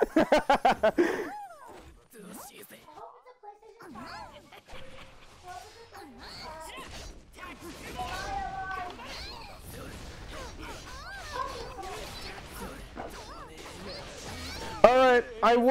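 Heavy blows land with sharp thuds and bursts of energy.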